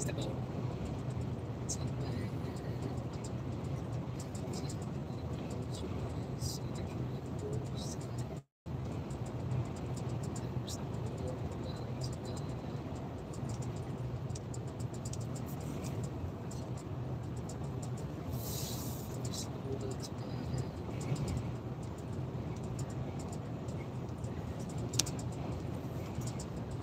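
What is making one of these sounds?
A vehicle's engine rumbles steadily as it drives along a highway.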